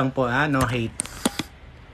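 A young man speaks brightly and close up.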